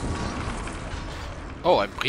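A spell bursts with a crackling magical sound.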